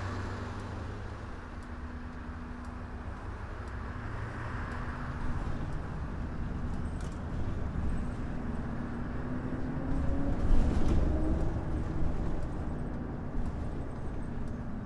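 A bus engine hums low and steady, rising in pitch as the bus speeds up.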